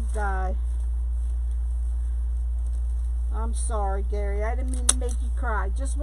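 A glue gun clicks as it is squeezed.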